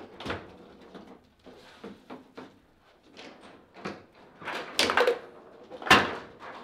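A foosball ball clacks sharply against plastic players and the table walls.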